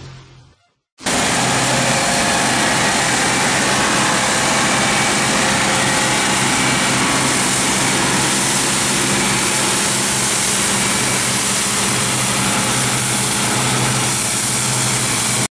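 A combine harvester's threshing machinery rattles and whirs.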